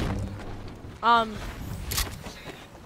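A pickaxe strikes a bush with a sharp thwack.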